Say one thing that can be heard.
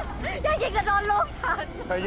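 A woman cries out pleading.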